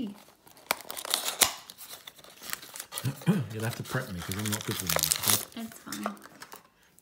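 Cardboard tears and rips as a small box is pulled open.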